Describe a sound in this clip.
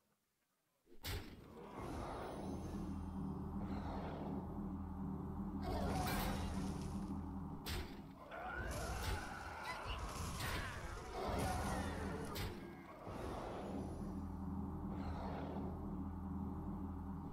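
Magical blasts and crackling impacts burst again and again.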